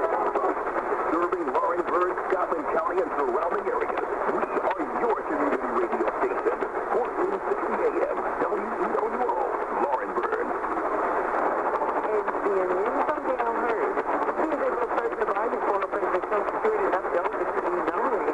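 A radio plays a muffled, tinny broadcast through a small loudspeaker.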